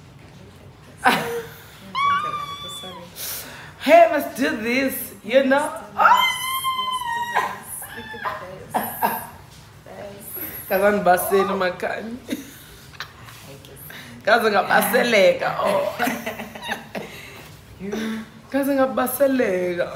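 A woman laughs and talks nearby.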